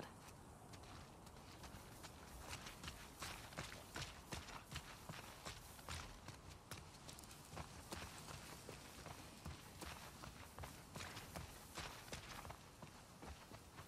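Footsteps rustle through tall grass and over paving at a steady walking pace.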